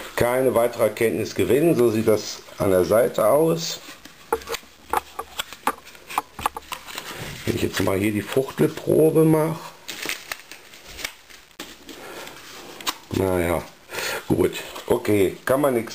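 Cardboard scrapes and slides as a box is handled.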